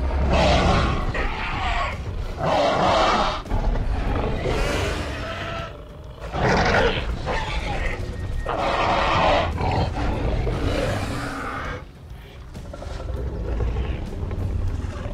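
Large dinosaurs roar and growl loudly, again and again.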